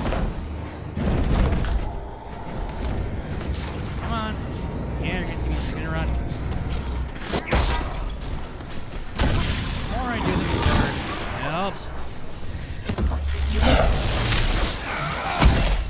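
Magical lightning crackles and zaps during a battle.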